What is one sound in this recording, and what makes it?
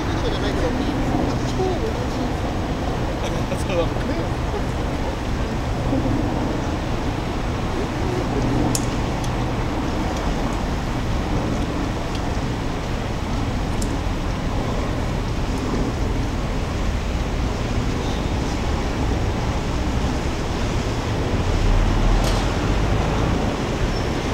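Traffic rumbles steadily on a nearby road.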